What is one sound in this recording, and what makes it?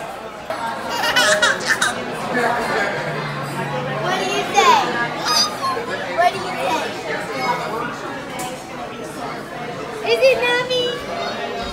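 A toddler girl laughs and squeals happily.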